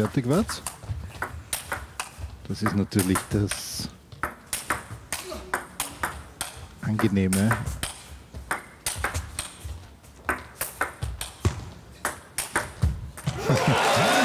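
A ping-pong ball clicks back and forth quickly between paddles and table.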